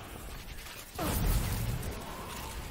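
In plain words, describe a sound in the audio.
An explosion booms with a deep roar.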